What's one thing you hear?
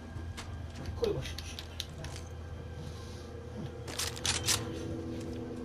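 Metal weapon parts click and clatter as a gun is switched.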